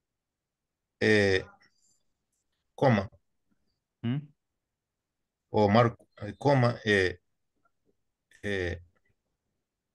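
A man speaks calmly in short phrases, heard through an online call.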